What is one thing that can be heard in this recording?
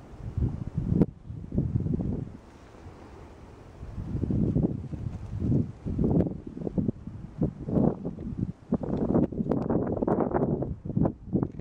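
A small child's footsteps crunch on rock and dry grass.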